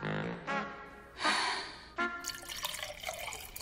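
Water pours from a jug into a glass.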